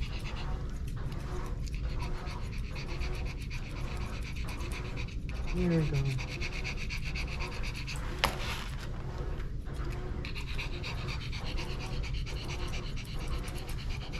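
Scissors snip quickly and steadily through fur.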